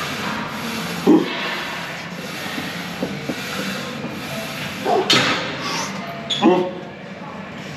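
A man grunts with effort while lifting.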